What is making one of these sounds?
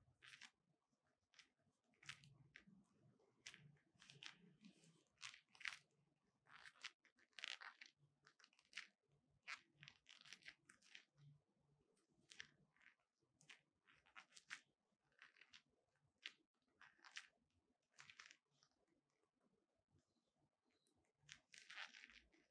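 A small metal lock clicks and rattles.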